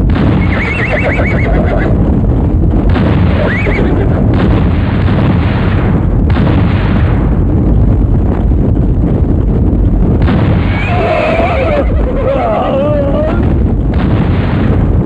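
Explosions blast and rumble.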